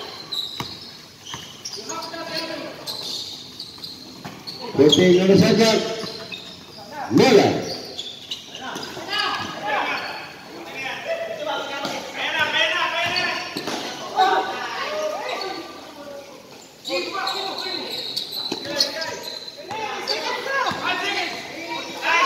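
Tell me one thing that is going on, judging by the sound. Young men shout to each other across an open court.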